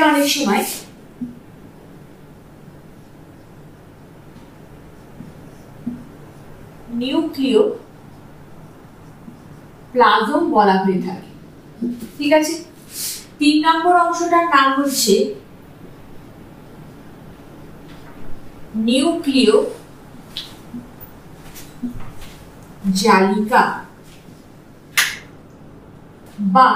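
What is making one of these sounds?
A woman speaks calmly and clearly nearby, in short phrases with pauses.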